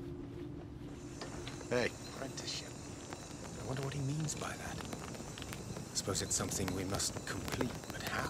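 A man speaks calmly and quietly.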